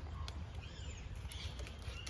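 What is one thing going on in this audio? A dog pants nearby.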